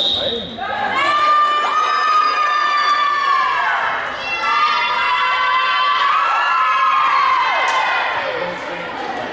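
A group of young women chant and cheer loudly in an echoing gym.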